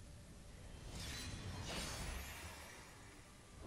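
A magical beam of light strikes with a rushing, shimmering whoosh.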